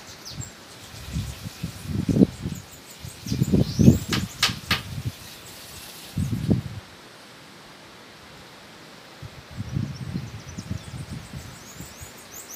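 Wind gusts buffet the microphone outdoors.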